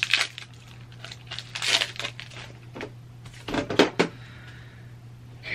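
Cards slap and shuffle in hands.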